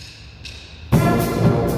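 A brass band starts playing loudly in an echoing hall.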